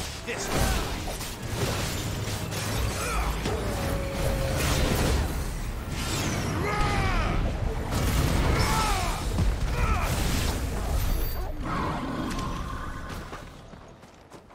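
Magic blasts boom and whoosh.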